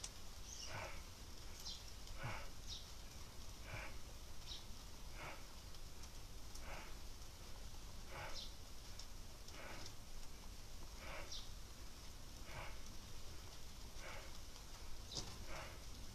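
Fabric rustles softly in short, regular bursts as legs swing up and down.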